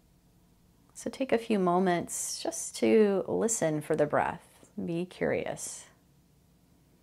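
A woman speaks calmly and close into a microphone.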